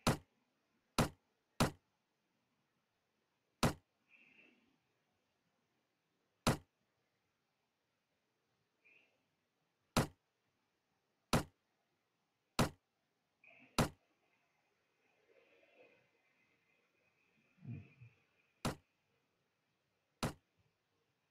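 Short sharp menu clicks sound now and then.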